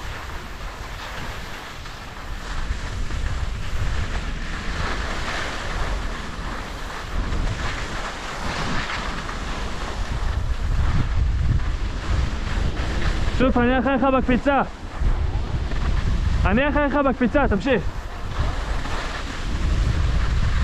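Skis scrape and hiss over packed snow.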